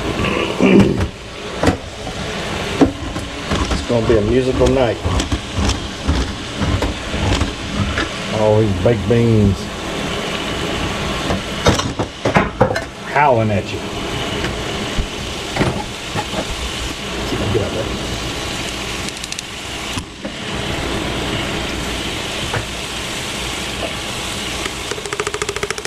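Ground meat sizzles steadily in a frying pan.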